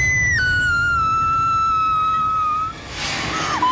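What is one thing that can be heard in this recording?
A young woman screams loudly.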